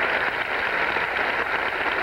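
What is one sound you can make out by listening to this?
An elderly man claps his hands.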